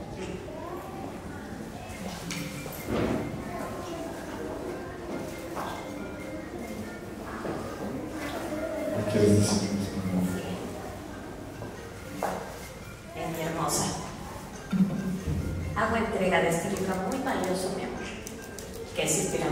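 An elderly man speaks calmly into a microphone over loudspeakers in an echoing room.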